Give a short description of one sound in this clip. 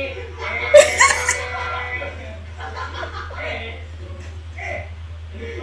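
Two young women laugh loudly close to a microphone.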